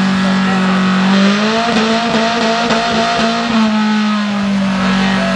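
A car engine roars loudly at high revs, dipping and rising in pitch.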